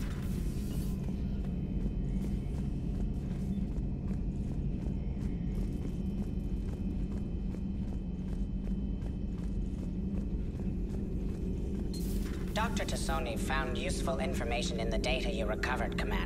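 Footsteps clang on a metal floor.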